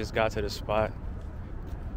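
A young man speaks with excitement close by.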